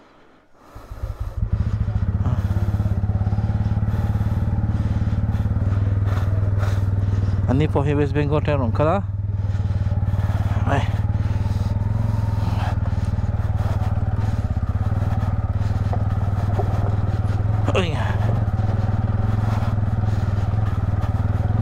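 A motorcycle engine rumbles steadily, close by.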